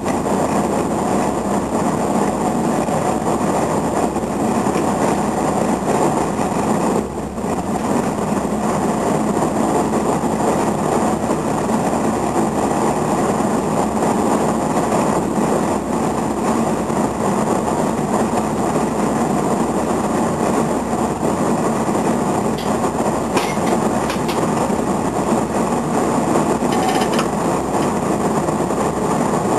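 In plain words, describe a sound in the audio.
Wind rushes past the moving train.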